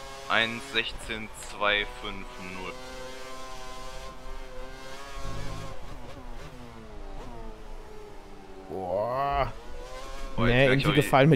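A racing car engine screams at high revs, rising and dropping in pitch as gears change.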